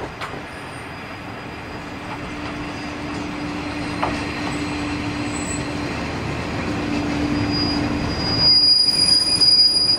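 A diesel railcar engine hums as it approaches and draws up close.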